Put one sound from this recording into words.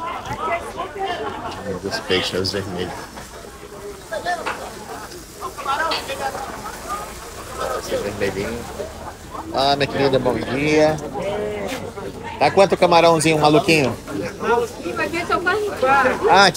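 Adult women and men talk and chatter nearby outdoors.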